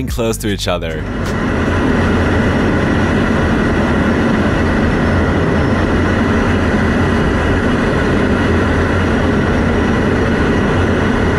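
A fighter jet roars steadily.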